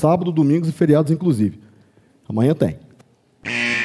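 A man speaks with animation through a headset microphone.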